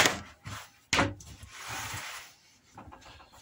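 A hand brushes dust across a wooden surface.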